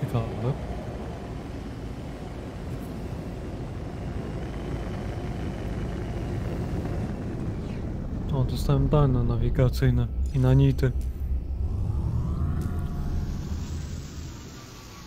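A spacecraft engine hums and roars steadily.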